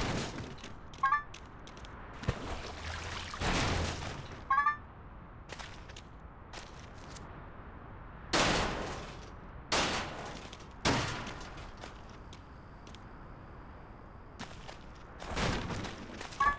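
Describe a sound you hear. Bright chimes ring out in quick little runs.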